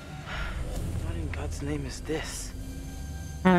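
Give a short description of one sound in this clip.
A young woman speaks softly and breathily nearby.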